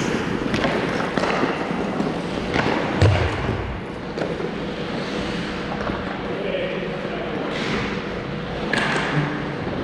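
Hockey sticks knock and clack against pucks, echoing in a large hall.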